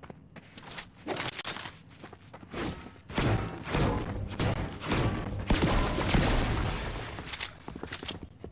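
Objects smash and shatter with loud crashing bursts.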